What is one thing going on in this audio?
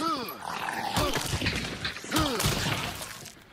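A heavy blade strikes with dull, thudding blows.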